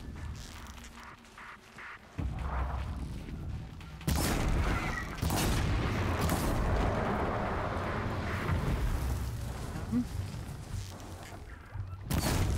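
A bowstring creaks as it is drawn taut.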